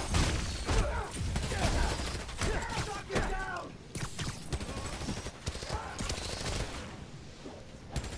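Air whooshes past as a figure swings and falls through the air.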